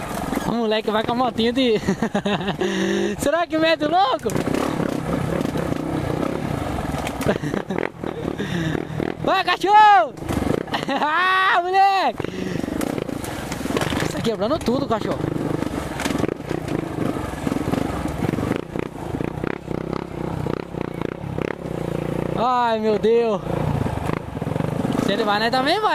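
A single-cylinder dirt bike engine revs in bursts on a rough trail.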